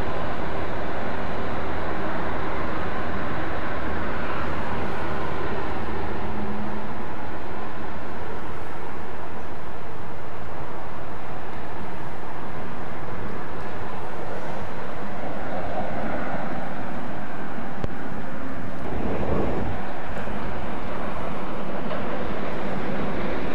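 A train's wheels rumble on the rails.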